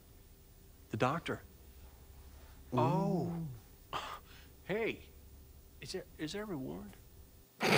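An older man talks casually close to a microphone.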